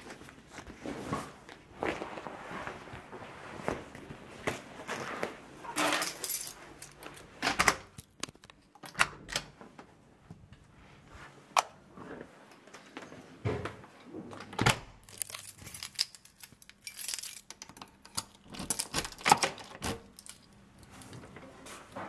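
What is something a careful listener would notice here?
Handling sounds rustle and knock close by.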